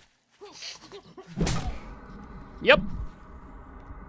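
A wooden club strikes a body with heavy thuds.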